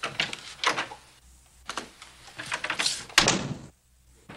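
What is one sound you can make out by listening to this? A door opens and shuts.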